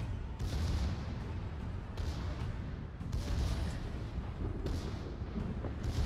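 Heavy naval guns fire with deep booming blasts.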